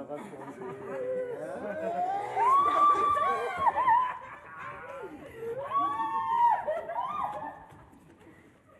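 Women sing high and loud with vibrato in a large echoing hall.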